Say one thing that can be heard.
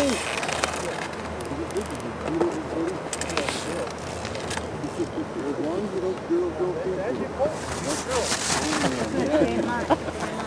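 A young spectator shouts and cheers loudly outdoors.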